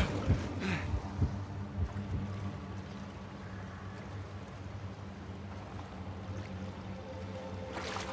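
Water sloshes as a man wades through it.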